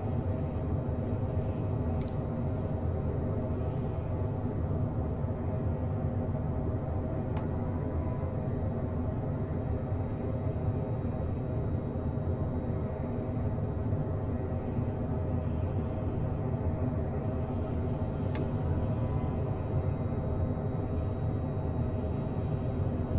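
Jet engines drone steadily.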